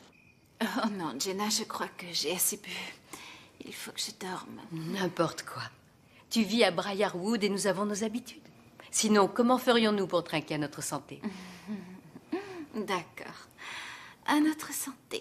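Another young woman answers with animation nearby.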